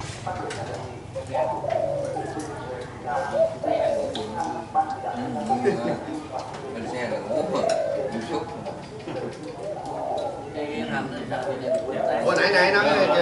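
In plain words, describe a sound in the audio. Several men talk and chat casually nearby.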